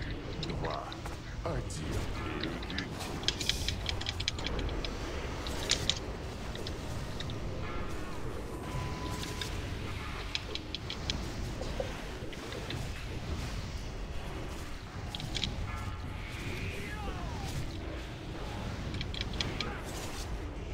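Spells crackle and clash in a busy battle.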